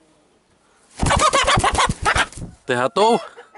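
A rooster flaps its wings hard and fast, up close.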